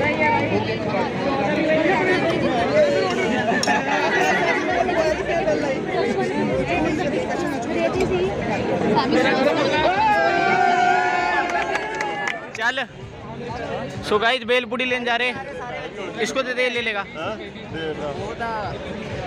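A crowd of young people chatters outdoors.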